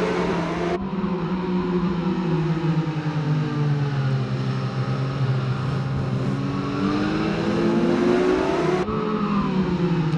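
Many motorcycle engines roar and whine as they race past, revving up and down.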